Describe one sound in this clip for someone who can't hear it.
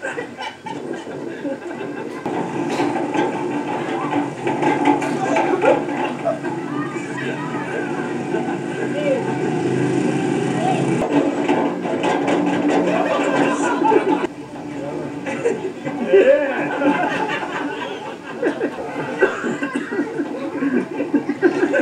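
A large metal wheel rumbles and clanks as a man tumbles inside it.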